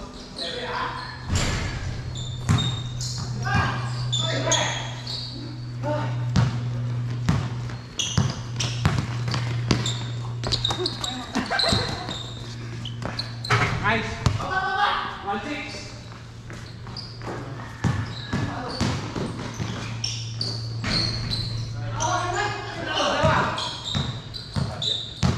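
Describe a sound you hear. Young men call out to each other during a game.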